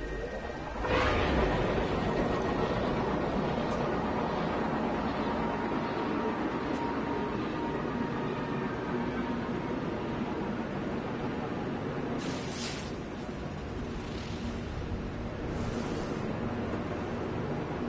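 A spaceship engine roars steadily in flight.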